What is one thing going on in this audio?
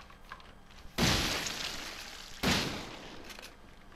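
A shotgun fires two loud blasts that ring out in a hollow space.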